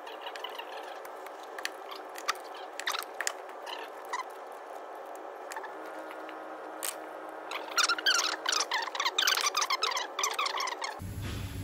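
Metal tools clink and tap against an engine part.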